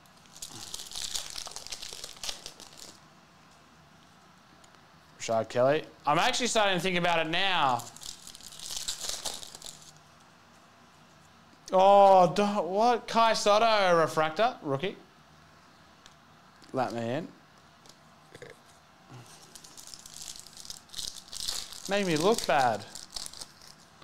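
A foil wrapper crinkles and tears as it is opened.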